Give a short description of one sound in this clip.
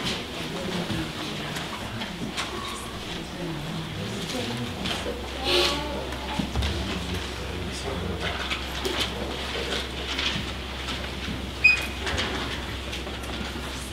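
A middle-aged man speaks calmly, heard from across a room.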